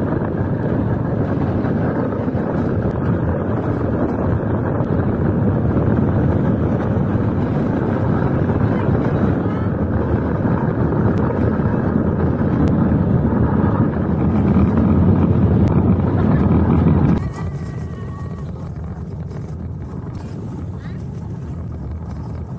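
Small plastic wheels rumble and hiss on a wet track.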